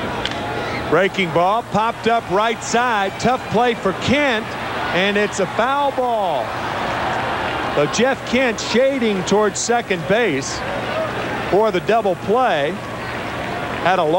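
A large crowd cheers and shouts loudly.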